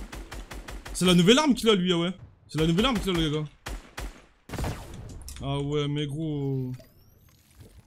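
A young man speaks loudly and with animation into a close microphone.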